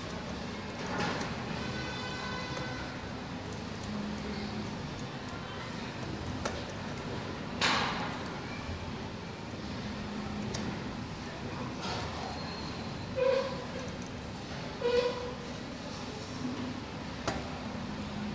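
A screwdriver clicks against metal terminals.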